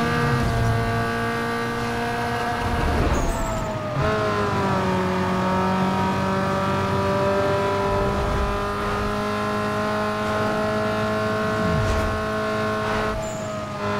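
A sports car engine roars at high speed and shifts gear with a brief drop in pitch.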